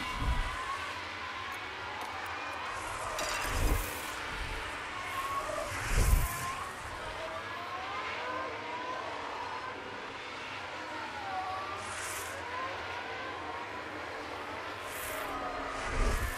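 A racing car engine screams at high speed, its pitch rising and falling.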